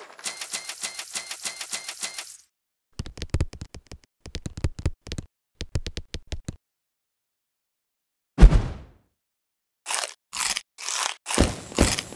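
Coins jingle in quick bright chimes.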